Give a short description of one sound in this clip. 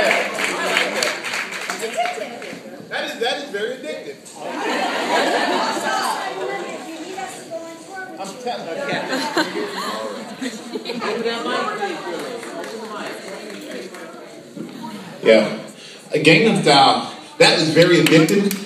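Several adults talk and chatter close by.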